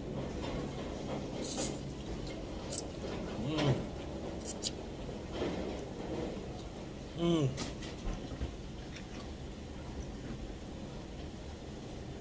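A man chews and smacks his lips.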